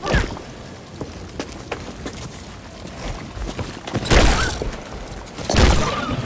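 Footsteps run across rocky ground.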